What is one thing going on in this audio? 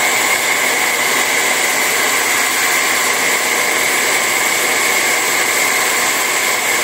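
A heat gun blows a steady, loud whirring rush of hot air up close.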